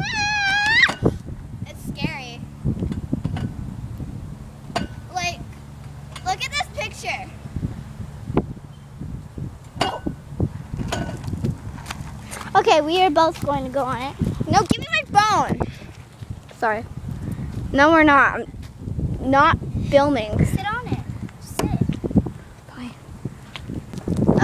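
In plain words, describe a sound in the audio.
A young girl talks and calls out brightly, close by.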